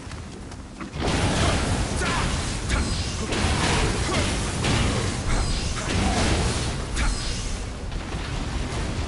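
Fiery blasts roar and crackle.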